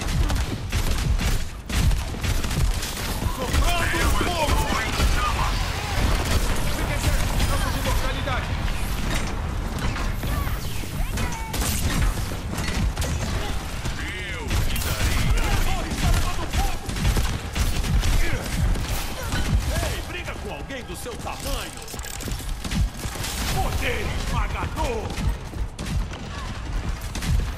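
Rapid gunfire and blasts rattle and boom throughout.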